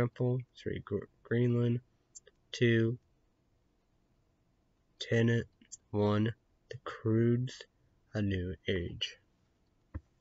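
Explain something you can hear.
A young man talks calmly and close to the microphone, in short bursts with pauses.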